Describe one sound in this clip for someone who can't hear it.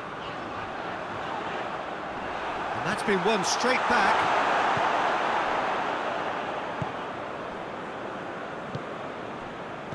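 A large stadium crowd roars, swelling and then fading.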